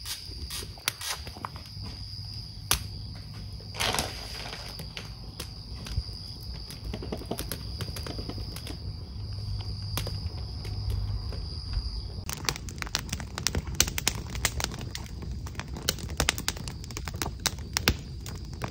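Keys tap and click in quick, uneven bursts close by.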